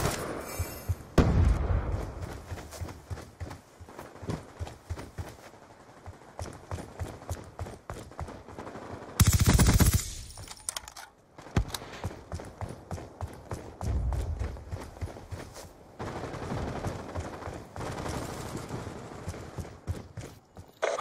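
Footsteps patter steadily on a hard floor.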